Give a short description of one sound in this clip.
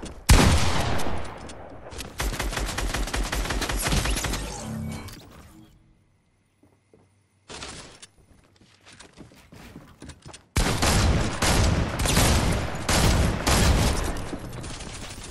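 Rapid gunfire crackles in quick bursts.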